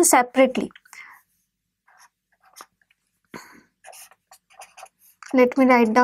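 A marker squeaks faintly across paper.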